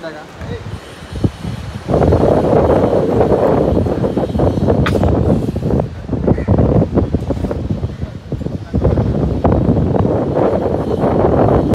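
Waves crash on a shore in the distance.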